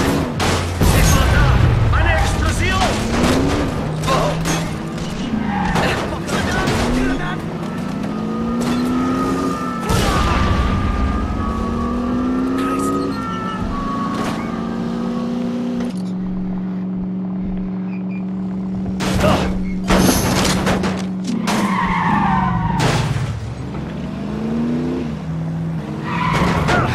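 A car engine revs up and down as it shifts through gears.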